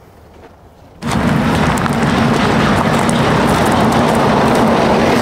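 A heavy truck engine rumbles loudly close by.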